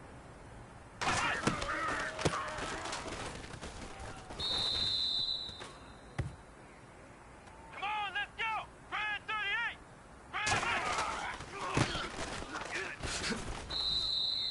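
Football players crash into each other in a tackle.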